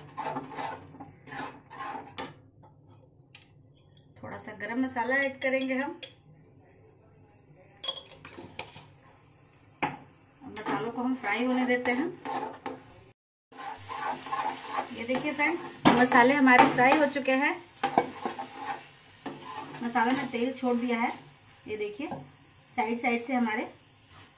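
A metal spatula scrapes and knocks against a pan.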